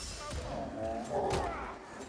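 A pistol fires in sharp bangs.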